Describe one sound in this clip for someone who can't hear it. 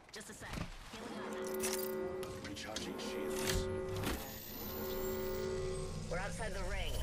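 A shield charger hums with a rising electronic whine.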